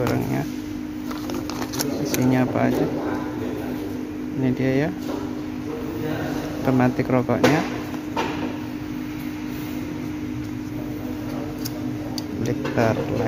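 Small metal and plastic parts click and rattle as they are handled.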